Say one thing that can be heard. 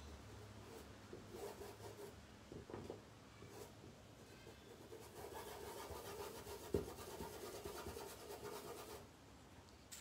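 A paintbrush brushes softly across cloth.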